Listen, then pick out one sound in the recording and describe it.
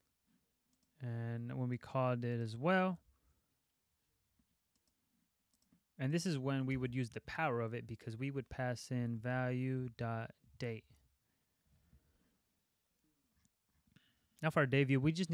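A young man talks calmly and close to a microphone, in bursts with pauses.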